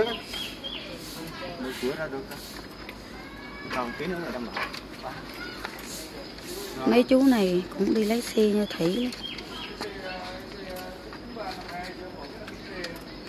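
Men talk nearby in casual conversation.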